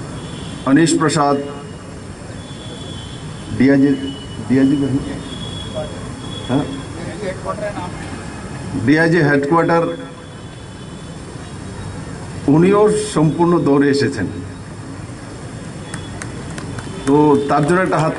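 A man gives a speech loudly through a microphone and loudspeakers, outdoors.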